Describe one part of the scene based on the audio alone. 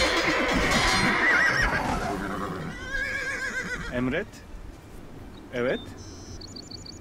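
Swords clash in a battle.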